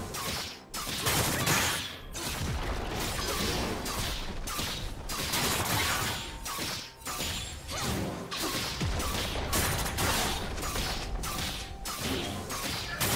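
Game spell effects and attacks crackle and clash in a fight.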